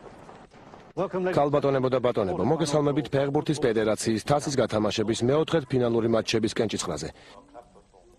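A man speaks clearly into a microphone, like a presenter announcing.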